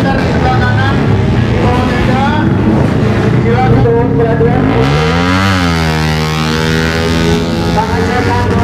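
A motorcycle engine revs loudly close by.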